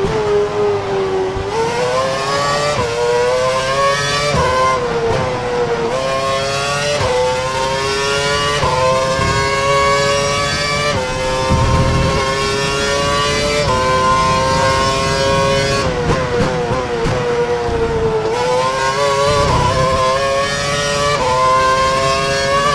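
A racing car engine whines loudly, rising in pitch through each gear and dropping sharply at each gear change.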